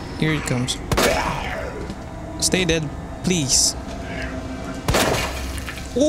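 A pistol fires two loud shots in an echoing room.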